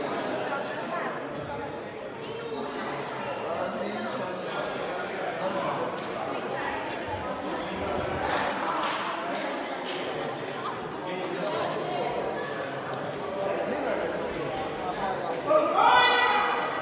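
A crowd of young men and women chatter in a large echoing hall.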